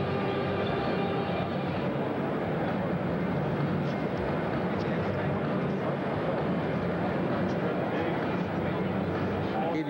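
Men talk with each other nearby.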